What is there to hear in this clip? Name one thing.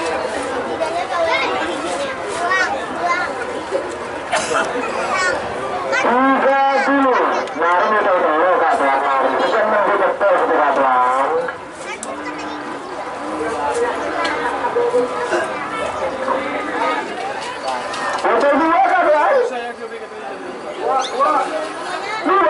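A crowd of men talks and shouts excitedly outdoors.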